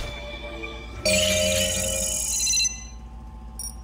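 A machine whirs and hums briefly as a panel opens.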